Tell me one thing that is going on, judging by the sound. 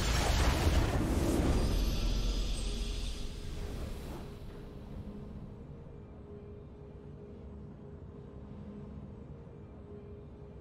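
A victory tune plays softly and steadily.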